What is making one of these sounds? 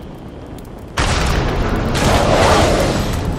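A gun fires in a rapid, loud burst.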